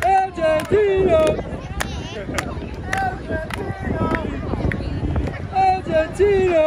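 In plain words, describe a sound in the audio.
A crowd of people chatters and shouts outdoors.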